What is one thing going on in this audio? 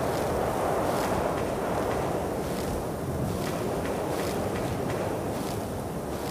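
Footsteps tread on soft ground.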